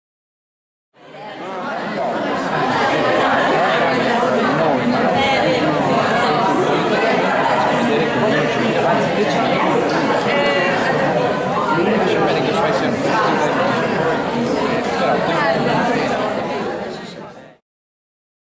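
A crowd of people chatter and laugh in a room.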